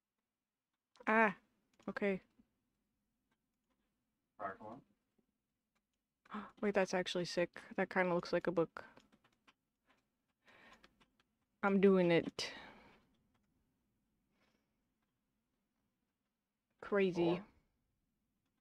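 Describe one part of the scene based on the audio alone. A young woman talks casually into a microphone, in short bursts.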